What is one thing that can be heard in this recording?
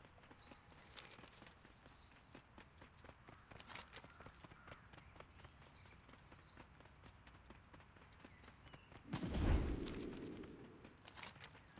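Quick footsteps patter on cobblestones.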